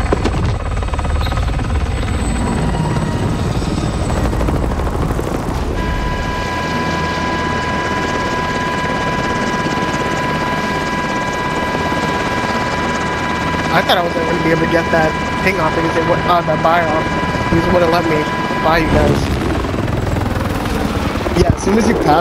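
A helicopter's rotor roars steadily.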